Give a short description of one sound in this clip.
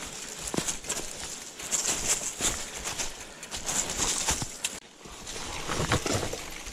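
A bicycle rattles and bumps over a rough forest trail.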